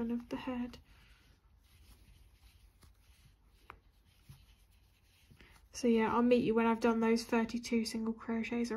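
A crochet hook softly scrapes and clicks through yarn.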